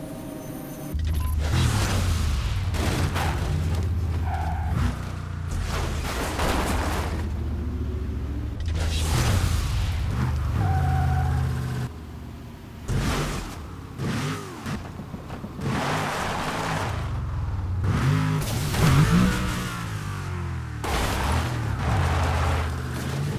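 A car engine roars loudly at high revs.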